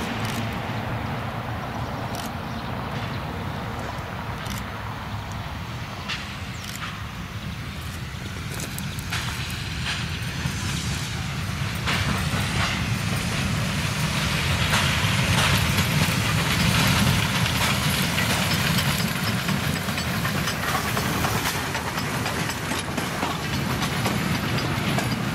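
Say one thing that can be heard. A steam locomotive chuffs steadily as it approaches, growing louder.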